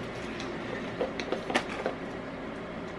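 Plastic packaging crinkles and clicks in hands.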